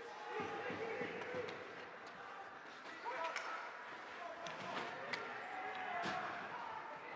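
Hockey sticks clack against a puck and each other.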